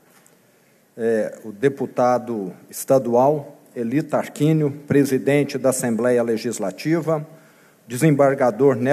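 A middle-aged man reads out calmly through a microphone.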